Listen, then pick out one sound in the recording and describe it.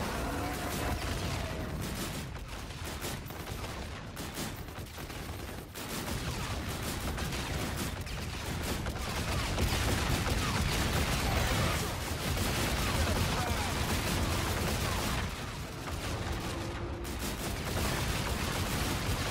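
Dual energy pistols fire rapid shots.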